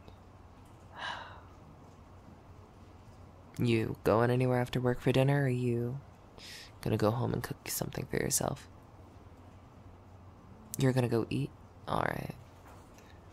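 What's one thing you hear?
A young woman speaks softly and closely into a microphone, in short bursts with pauses.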